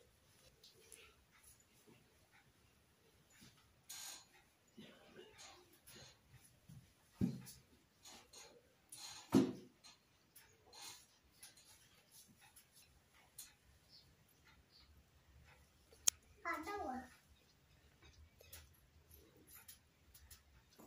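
Small objects knock and clink softly as they are set down on a table.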